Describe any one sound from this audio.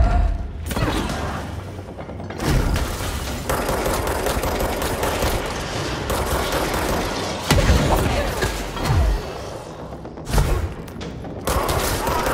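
Gunfire rings out in rapid bursts.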